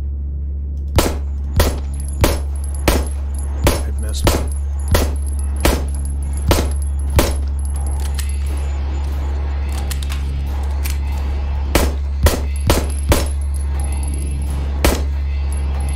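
Gunshots ring out one after another, each with a short echo.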